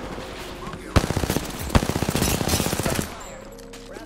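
An automatic rifle fires rapid bursts up close.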